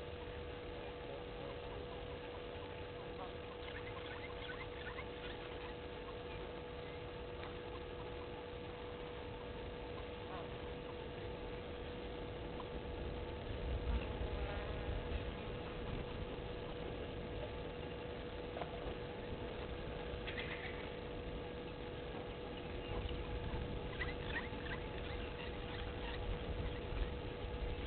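A bird rustles and pecks in dry grass.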